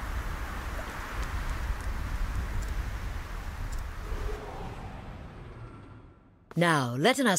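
Wind blows steadily through falling snow and fades away.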